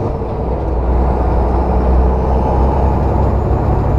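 A windshield wiper swishes across the glass.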